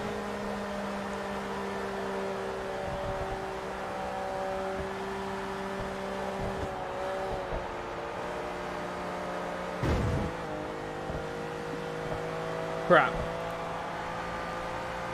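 A racing car engine drones steadily at high speed.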